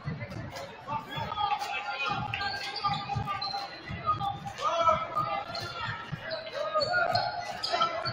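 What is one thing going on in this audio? A basketball is dribbled on a hardwood court.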